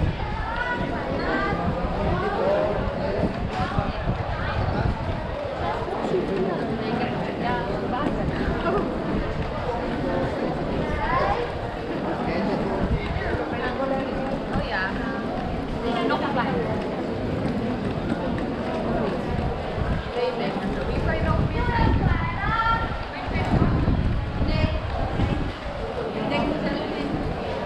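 A busy crowd of men and women chatters nearby outdoors.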